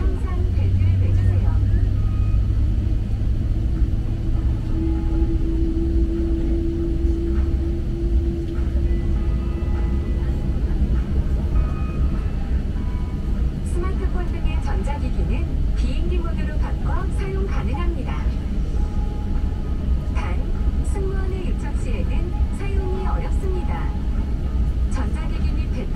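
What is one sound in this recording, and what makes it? An aircraft engine rumbles steadily from inside a cabin as the plane taxis.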